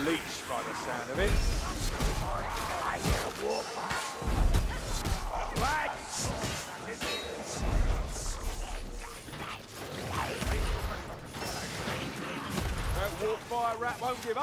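Blades hack and clang in a close fight.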